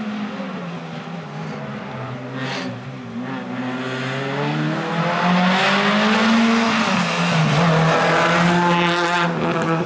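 A rally car engine approaches, revving and rising in pitch, then roars close by.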